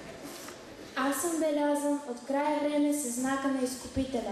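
A teenage girl reads aloud into a microphone.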